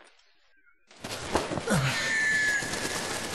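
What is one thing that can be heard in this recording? A flock of birds takes off with a loud flurry of flapping wings.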